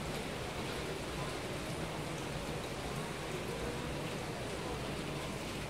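Heavy rain pours down onto paving outdoors.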